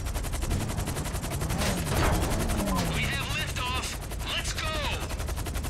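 A helicopter's rotor chops rapidly overhead.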